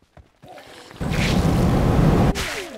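A loud explosion roars and crackles.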